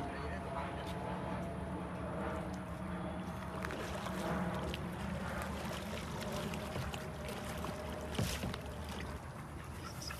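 A paddle splashes through water.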